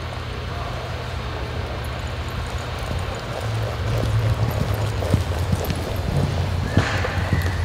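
A horse's hooves thud softly on dirt.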